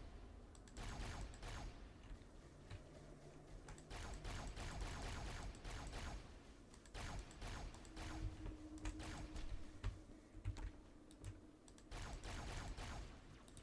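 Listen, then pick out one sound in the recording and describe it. Rapid energy weapon fire crackles in bursts.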